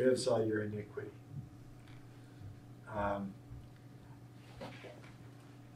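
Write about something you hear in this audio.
An elderly man speaks calmly in short phrases.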